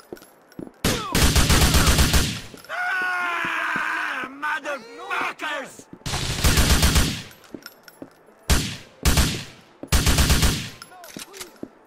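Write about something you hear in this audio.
An automatic rifle fires in short bursts.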